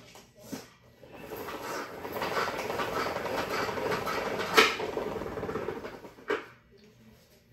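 A mop scrubs across a hard floor.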